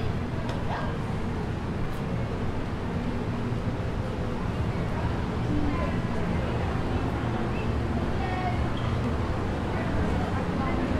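Men and women chatter at a distance outdoors.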